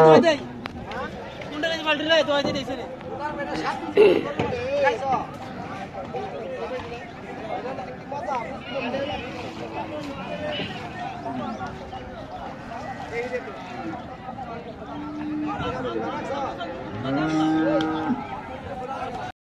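Men talk and call out outdoors.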